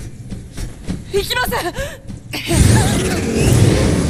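A young woman cries out in strain.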